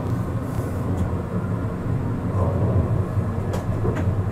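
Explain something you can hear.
Tram wheels click over rail joints.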